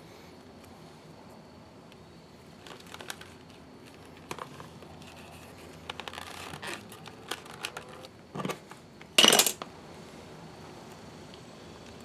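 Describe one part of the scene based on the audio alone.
A leather holster creaks and rubs as it is handled.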